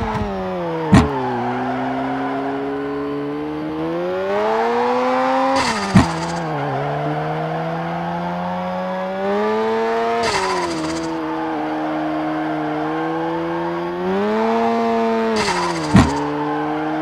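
A car exhaust pops sharply.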